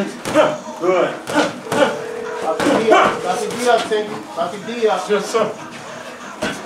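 A man shouts instructions loudly from close by.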